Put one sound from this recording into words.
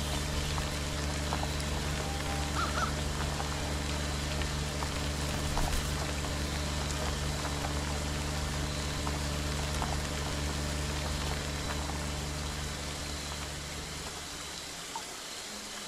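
A car engine drones as a car drives along a road.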